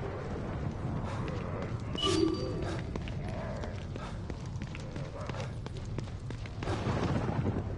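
Footsteps run over wet pavement.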